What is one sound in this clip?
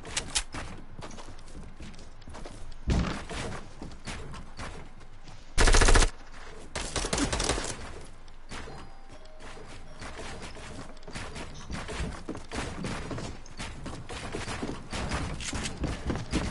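Building pieces snap into place with quick clattering knocks, over and over.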